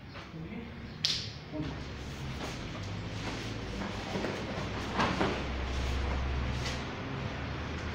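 Bodies thump and scuffle on a padded mat.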